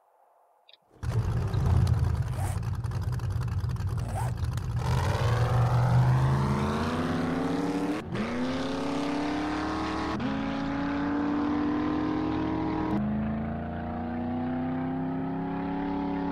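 A truck engine starts, then revs up and climbs through the gears as it drives away.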